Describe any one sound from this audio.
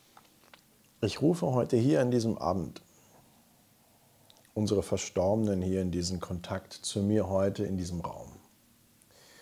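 A man speaks close to a microphone, calmly, in short bursts with pauses.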